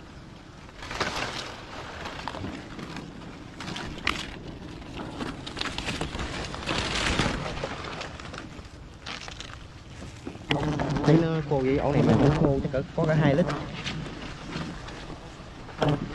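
Palm fronds rustle and brush as a climber moves against a tree trunk.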